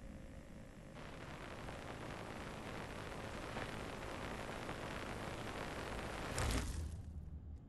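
A television hisses softly with static.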